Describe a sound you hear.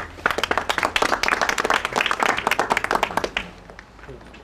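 A group of people applaud outdoors.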